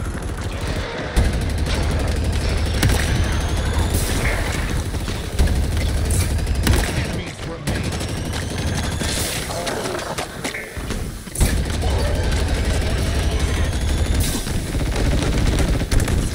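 Energy blasts whine and zap.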